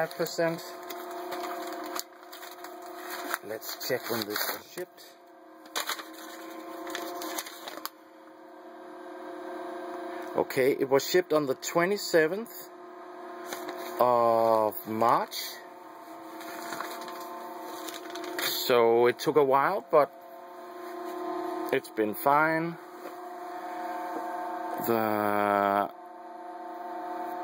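A machine's fan hums steadily close by.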